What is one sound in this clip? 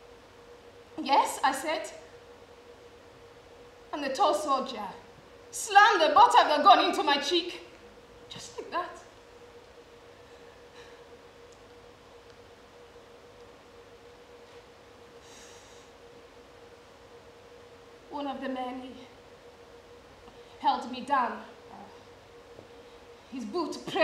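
A young woman speaks in short, halting phrases with long pauses.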